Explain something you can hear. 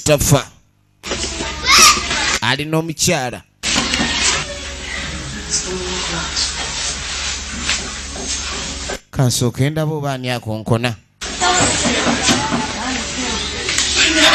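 A woman speaks loudly with animation nearby.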